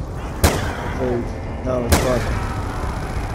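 Creatures growl and groan.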